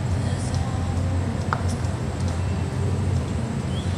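A horse's hooves thud softly on loose dirt.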